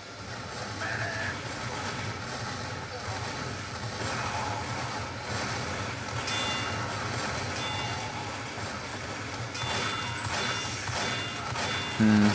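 Rockets explode with loud bangs in a video game.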